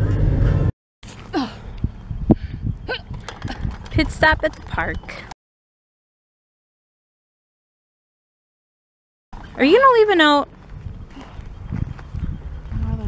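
A young woman talks with animation outdoors.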